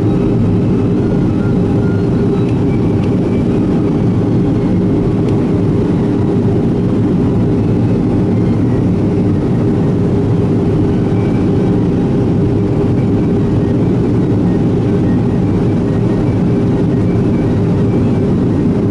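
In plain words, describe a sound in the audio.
Jet engines roar steadily from inside an aircraft cabin.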